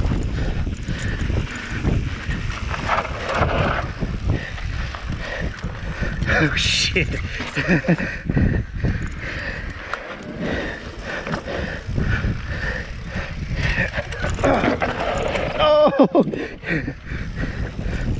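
Bike tyres crunch and rumble over a dirt trail.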